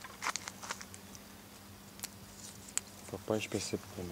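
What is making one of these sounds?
Dry branches rustle and snap as a hand pushes through a bush.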